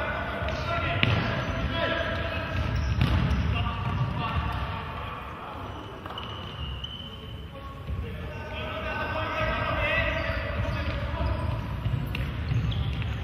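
A ball is kicked with dull thumps.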